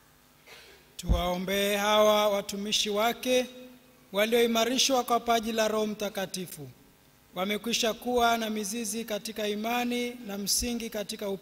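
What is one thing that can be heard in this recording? A man sings a chant through a microphone in a reverberant hall.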